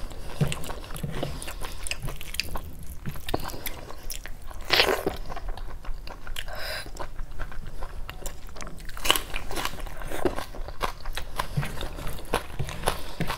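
Fingers squish and mix soft rice.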